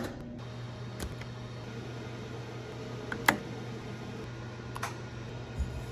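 Keys on a control panel click.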